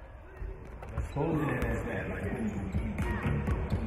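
A basketball bounces and sneakers squeak on a hard court.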